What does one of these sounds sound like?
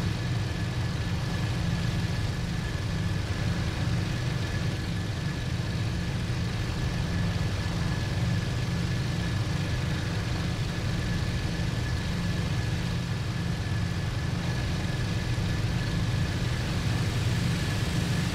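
Wind rushes past an aircraft canopy.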